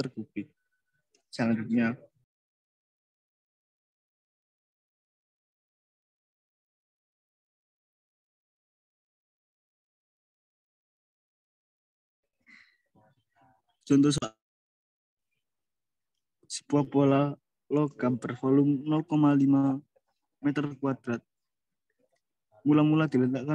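A young man speaks calmly into a close microphone, in short bursts with long pauses.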